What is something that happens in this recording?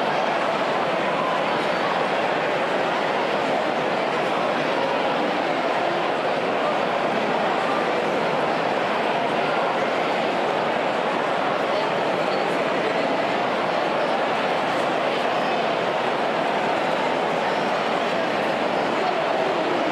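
A large crowd of men chatters and shouts loudly in an echoing hall.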